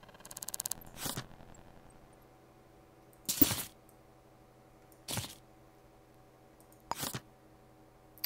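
Short interface clicks and whooshes sound now and then.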